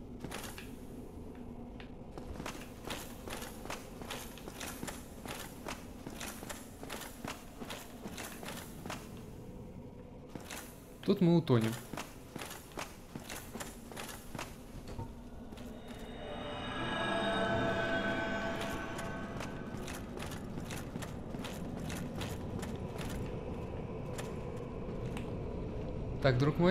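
Heavy armored footsteps clank steadily on stone.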